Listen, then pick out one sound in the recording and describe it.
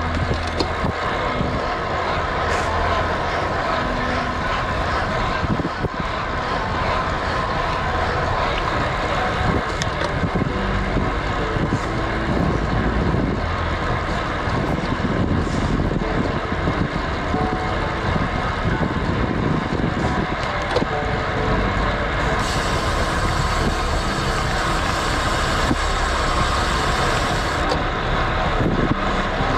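Road bike tyres hum on asphalt.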